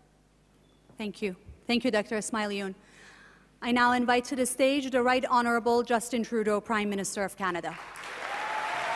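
A young woman speaks calmly into a microphone.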